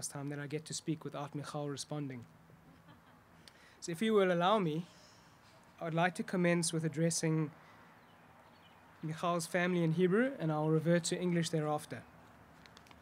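A young man reads out calmly through a microphone, outdoors, pausing between phrases.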